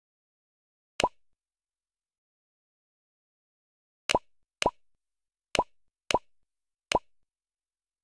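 Short menu clicks tick one by one.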